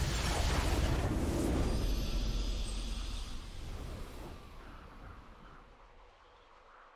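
A triumphant game fanfare swells and fades.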